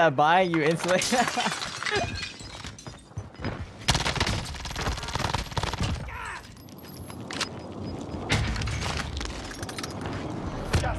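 Automatic video-game gunfire rattles.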